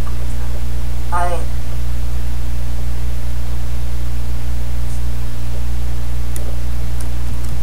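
A middle-aged woman speaks calmly close to a microphone.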